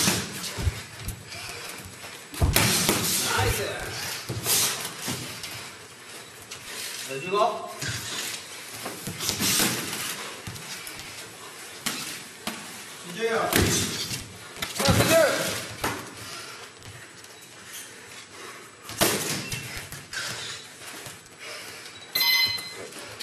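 Boxing gloves thud against pads and headgear in quick bursts.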